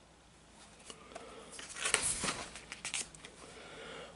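A book page rustles as a hand turns it.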